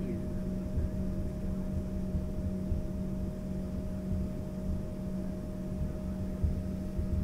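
A jet engine hums steadily with a low drone close by.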